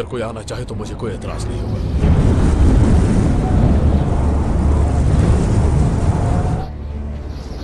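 A strong wind howls over open snow.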